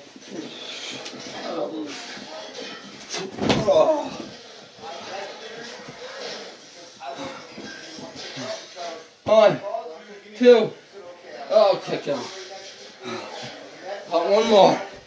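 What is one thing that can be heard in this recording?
Young men shout and laugh loudly nearby.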